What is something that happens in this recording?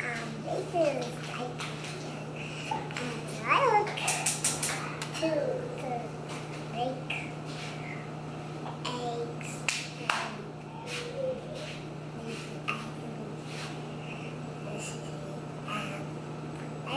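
A young child talks and sings with animation close by.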